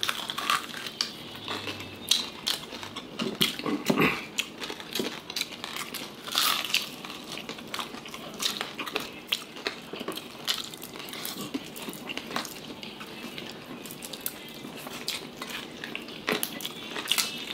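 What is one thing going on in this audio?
Crispy fried food crunches loudly as it is chewed close up.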